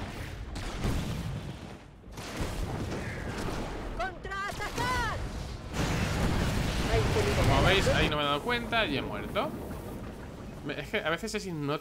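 Laser guns fire in short bursts.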